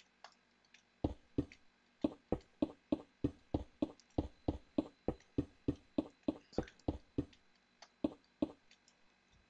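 A pickaxe taps at stone in quick, even blows.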